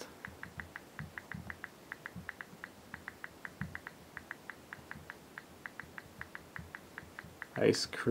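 Fingertips tap softly on a touchscreen.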